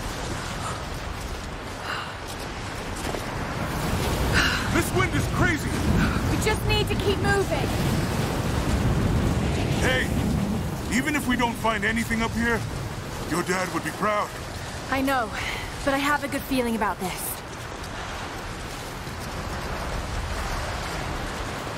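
Boots crunch through snow.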